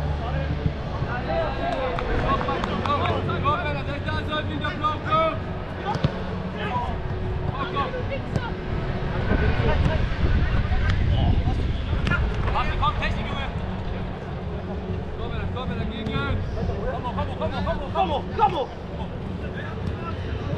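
Men shout and call out to each other at a distance.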